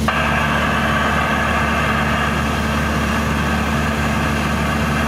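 Wind rushes steadily past the plane.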